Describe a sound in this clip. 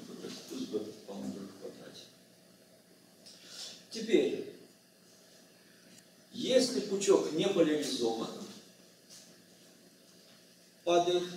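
An elderly man lectures calmly in a room with a slight echo.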